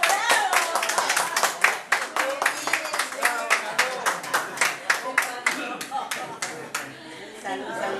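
A group of people clap their hands in a quick, steady rhythm.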